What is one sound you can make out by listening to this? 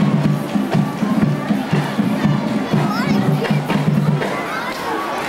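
A group of young women chant a cheer loudly outdoors.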